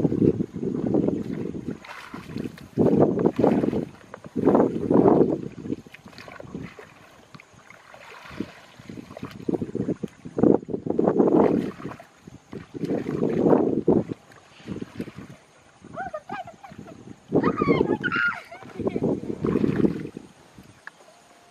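Water splashes and sloshes in short bursts close by.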